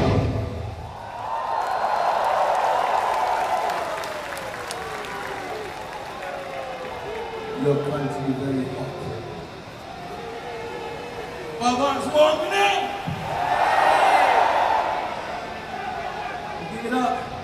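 A band plays loud music through powerful loudspeakers.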